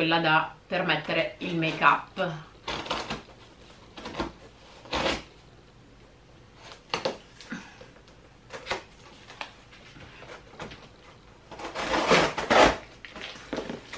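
A knife slits packing tape on a cardboard box.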